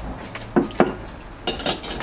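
Plates clink as they are set on a wooden table.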